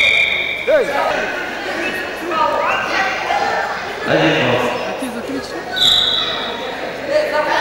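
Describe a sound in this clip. A crowd of children and adults chatters and calls out in an echoing hall.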